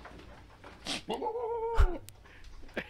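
A goat screams with a loud, wavering bleat.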